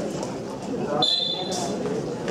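A referee blows a short whistle blast.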